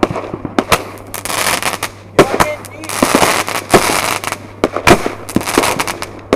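Fireworks crackle and fizz loudly in a dense barrage.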